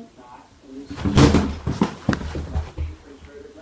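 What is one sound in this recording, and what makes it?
A young girl falls heavily onto a carpeted floor with a thud.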